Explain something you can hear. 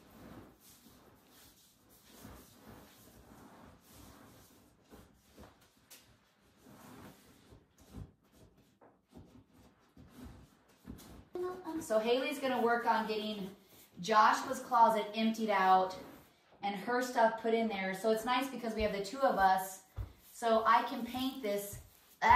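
Faint brush strokes scrape on a wall.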